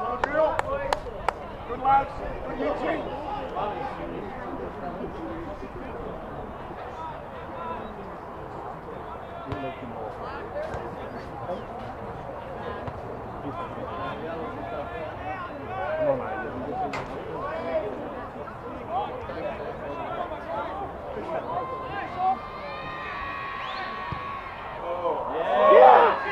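Men and women talk and call out across an open field.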